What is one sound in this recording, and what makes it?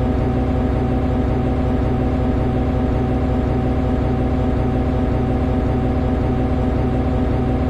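A diesel locomotive engine idles with a steady, low throbbing hum.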